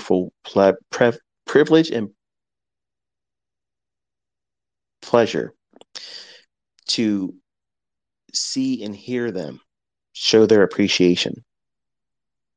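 A man speaks calmly and deliberately close to a microphone, with long pauses.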